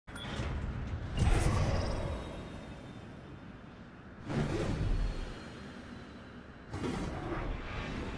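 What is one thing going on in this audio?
A large aircraft engine drones steadily overhead.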